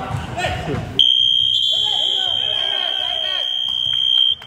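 A referee's whistle blows one long, steady blast.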